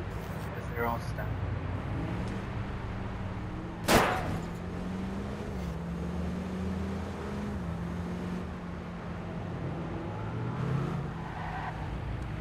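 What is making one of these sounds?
A van engine hums steadily as it drives along a street.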